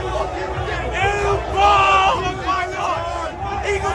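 A young man shouts close by.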